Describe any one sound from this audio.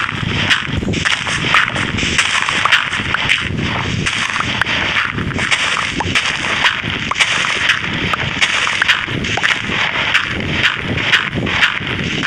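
Dirt crunches in quick, repeated scrapes as it is dug.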